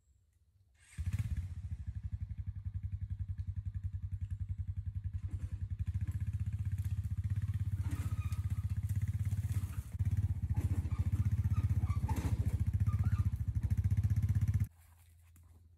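A small engine runs steadily nearby with a rough, rattling chug.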